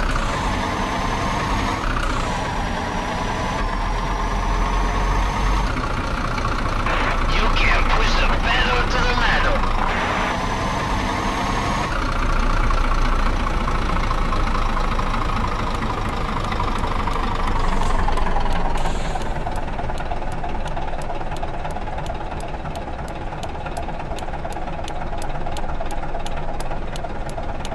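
A diesel semi-truck engine drones as it pulls a heavy load.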